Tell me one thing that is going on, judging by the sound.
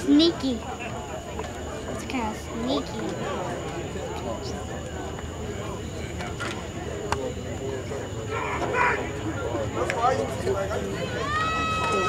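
Men's voices talk and call out nearby, outdoors.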